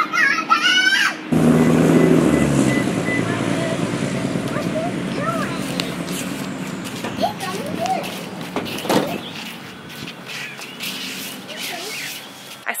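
A young girl squeals and chatters loudly nearby.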